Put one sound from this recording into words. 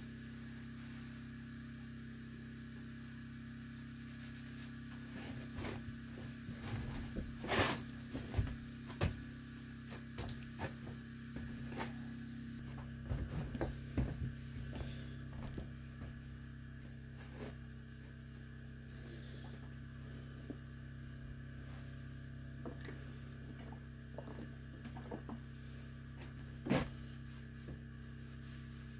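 A cloth rubs and wipes against a metal stove.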